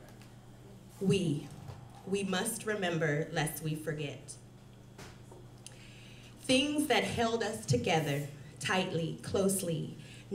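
A young woman reads aloud into a microphone, with pauses.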